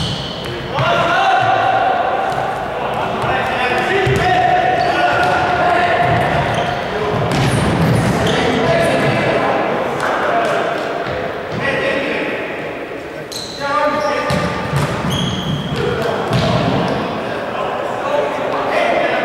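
A ball thuds against the floor and walls.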